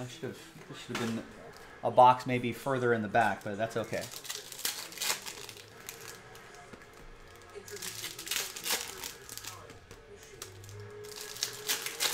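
Foil wrappers crinkle and rustle as packs are torn open.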